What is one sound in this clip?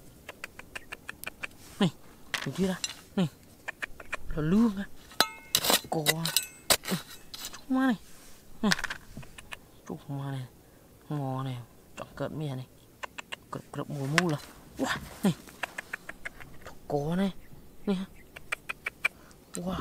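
Fingers rub and crumble dry soil.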